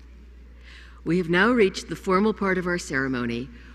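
An elderly woman speaks slowly into a microphone over a loudspeaker in a large hall.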